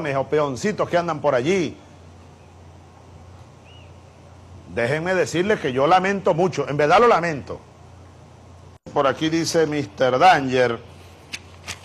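A man speaks calmly and with pauses, close to a microphone.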